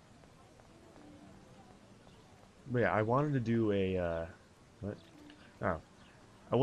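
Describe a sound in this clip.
Footsteps walk on a paved path.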